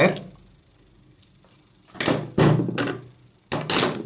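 Metal tools clatter onto a wooden tabletop.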